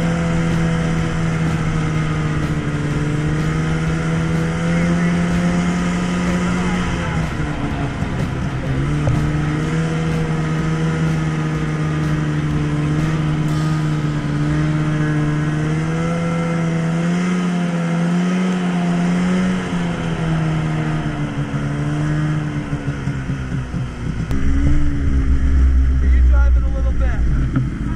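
A two-stroke snowmobile engine drones at cruising speed, its pitch rising and falling with the throttle.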